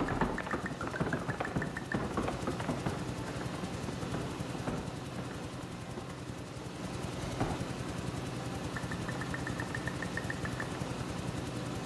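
A large electric fan hums steadily.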